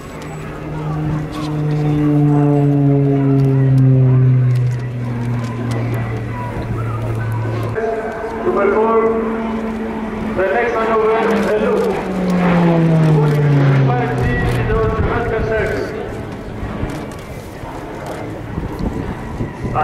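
A propeller plane's engine drones overhead, its pitch slowly falling as it passes.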